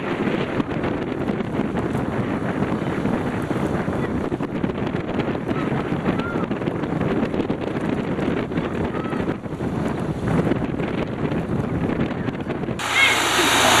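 Small waves splash and lap.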